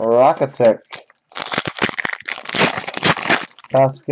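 Foil wrapper crinkles as it is peeled open.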